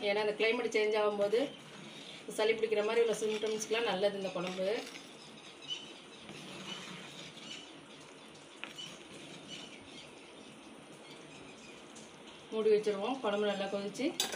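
A metal ladle stirs thick soup in a pot.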